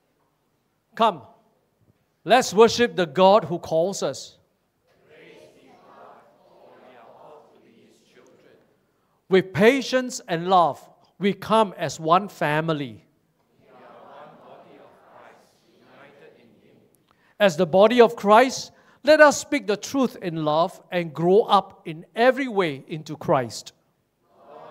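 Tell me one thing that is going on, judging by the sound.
An elderly man reads out over a microphone.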